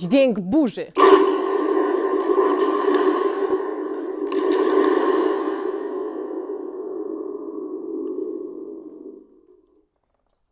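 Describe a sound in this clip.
A rain stick rattles with a long, steady rush of pouring beads that slowly fades.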